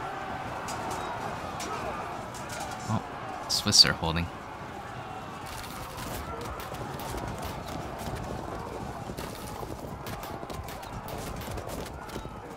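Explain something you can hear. Soldiers clash and shout in a distant battle.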